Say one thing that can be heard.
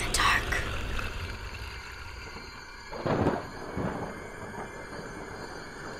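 A young boy speaks quietly.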